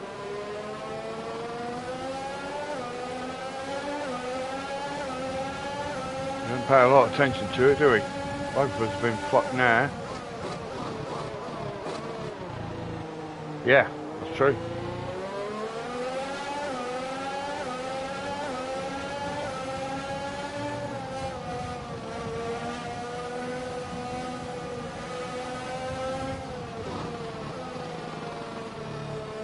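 A racing car engine whines loudly, rising in pitch and dropping with each gear change.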